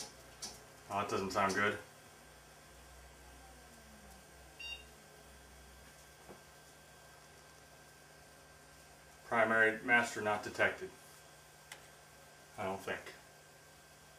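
A man speaks briefly into a phone headset, close by.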